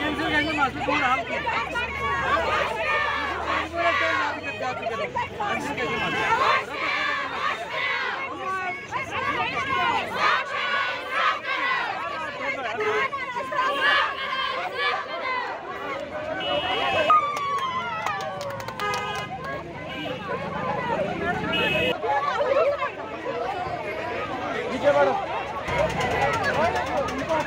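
A crowd clamours outdoors.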